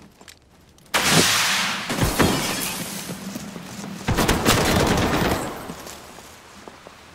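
A smoke grenade bursts and hisses loudly, then fades.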